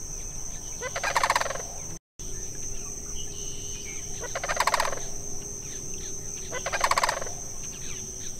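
A crane gives loud rolling, rattling calls, several times.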